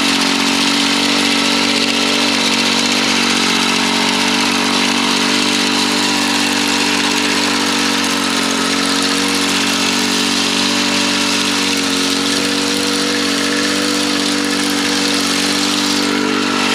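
A small gas engine drones steadily up close.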